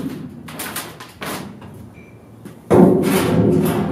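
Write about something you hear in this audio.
A large metal panel scrapes and rattles as it is moved.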